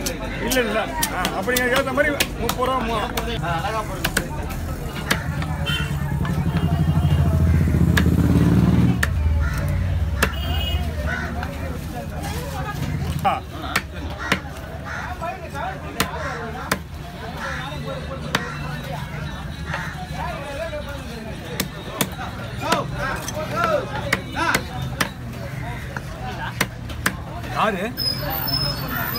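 A knife chops through fish on a wooden block with sharp thuds.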